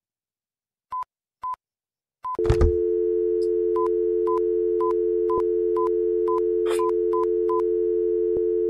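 Telephone keys beep as numbers are pressed.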